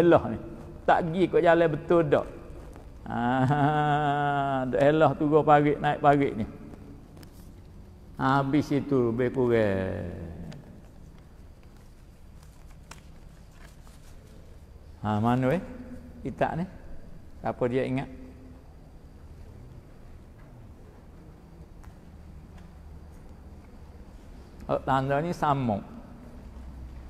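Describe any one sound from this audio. An elderly man speaks and chants slowly into a microphone in an echoing room.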